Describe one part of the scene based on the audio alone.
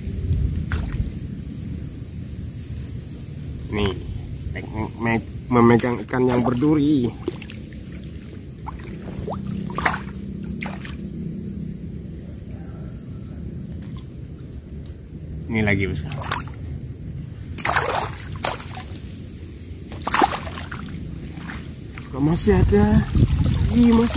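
Water splashes and sloshes around a net.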